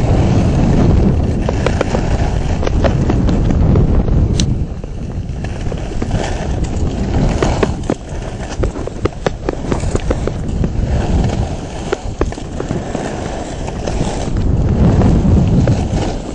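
Skis scrape and hiss over packed snow.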